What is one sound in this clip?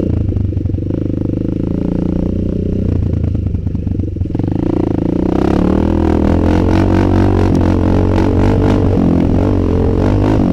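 A dirt bike engine roars steadily close by, revving higher as it speeds up.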